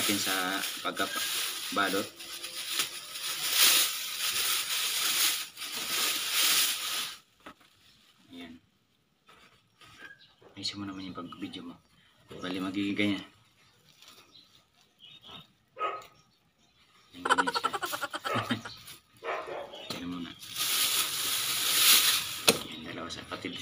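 Plastic wrapping crinkles and rustles as it is pulled open.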